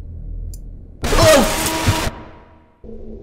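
A young man screams loudly close to a microphone.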